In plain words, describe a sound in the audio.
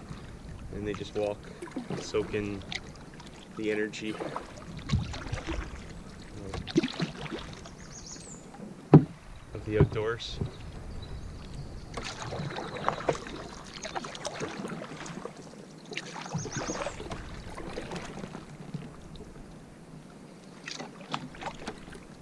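A paddle splashes and drips in the water.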